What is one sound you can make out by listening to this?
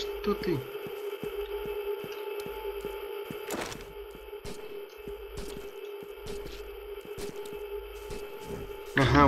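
Footsteps thud on dirt.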